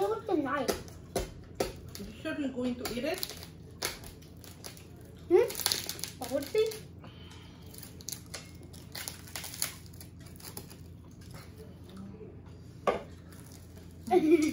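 Cutlery clinks and scrapes on a plate.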